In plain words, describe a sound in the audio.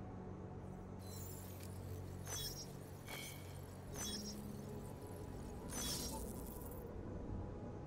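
Electronic beeps and clicks chirp in short bursts.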